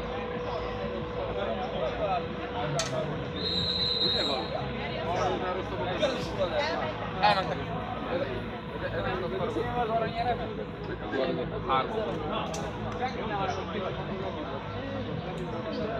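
Men and women chat nearby outdoors.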